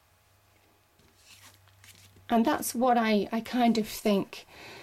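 Playing cards slide and rustle softly against each other.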